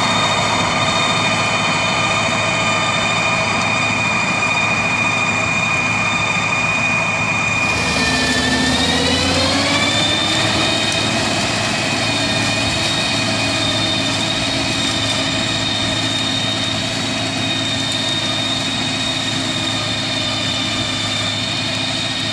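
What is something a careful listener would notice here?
A tractor engine drones steadily.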